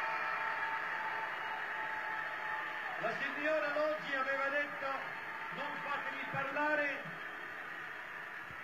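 A large crowd applauds and cheers in an echoing arena.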